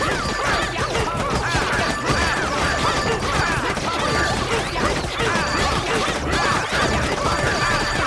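Upbeat game music plays steadily.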